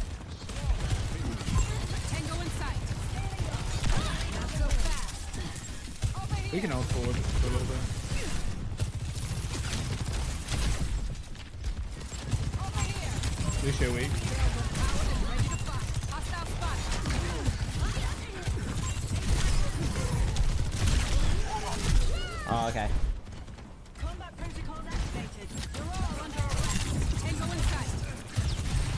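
Game gunfire and blasts crackle rapidly.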